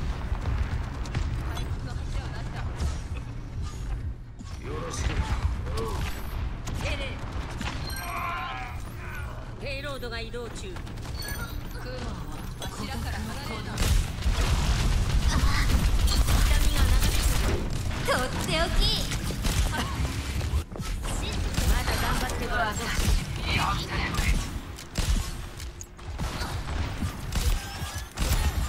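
Gunshots from a video game rifle crack rapidly.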